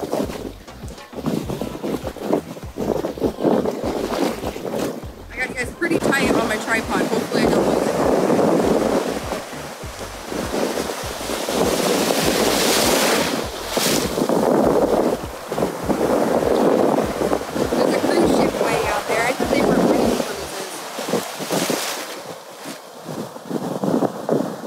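Waves break and wash loudly close by.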